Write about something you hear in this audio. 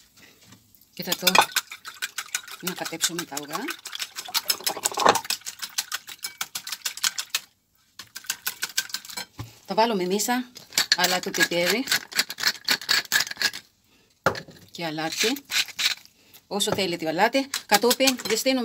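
A wire whisk beats eggs rapidly in a ceramic bowl, clinking against its sides.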